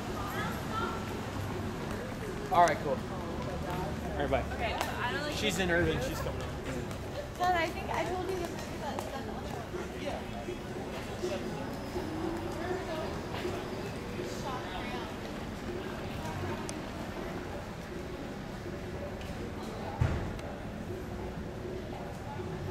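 Traffic hums steadily on a city street outdoors.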